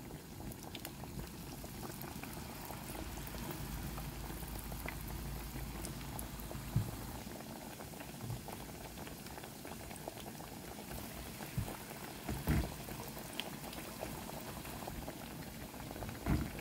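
Hot oil sizzles and crackles steadily as food fries.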